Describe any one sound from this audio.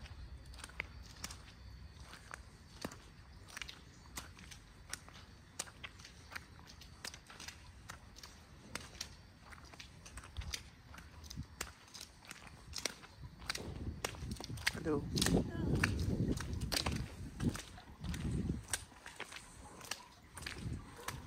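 Footsteps crunch and scrape on a wet, icy road.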